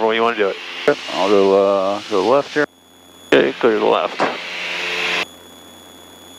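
A man speaks over an aircraft radio headset.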